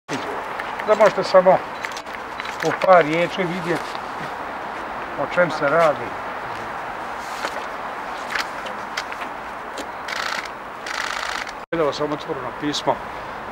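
An elderly man speaks calmly into microphones close by.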